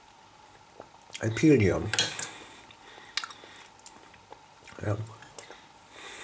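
A metal spoon scrapes and clinks against a glass bowl.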